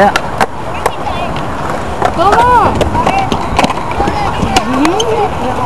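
Skateboards clack sharply against concrete.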